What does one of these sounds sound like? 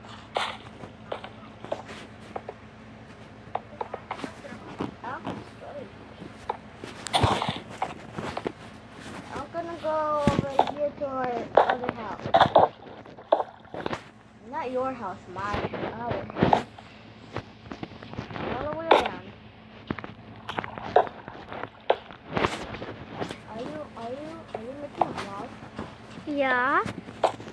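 Game blocks are placed with short soft knocks.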